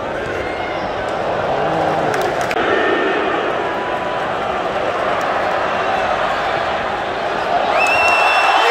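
A large stadium crowd murmurs and chants.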